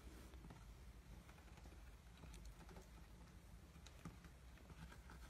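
A kitten scratches and rustles on a soft blanket.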